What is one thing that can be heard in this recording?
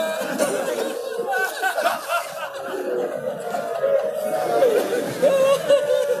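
A crowd of men chants together loudly in a large echoing hall.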